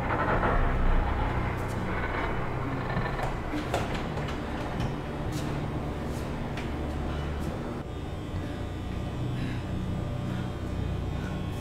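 Footsteps hurry across a hard floor.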